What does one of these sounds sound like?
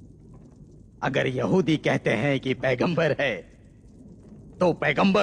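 An elderly man speaks slowly and with gravity.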